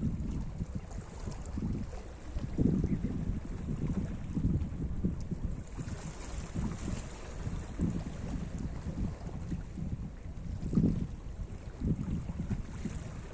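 Small waves lap and splash against rocks on the shore.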